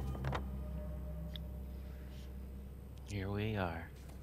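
Paper rustles as a map is folded.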